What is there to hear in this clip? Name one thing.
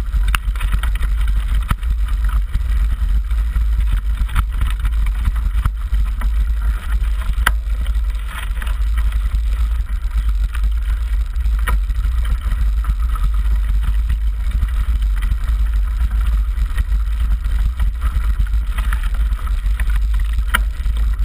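A bicycle frame knocks sharply over bumps.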